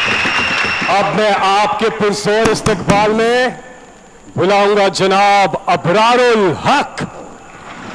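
A man speaks loudly and forcefully into a microphone, heard through loudspeakers.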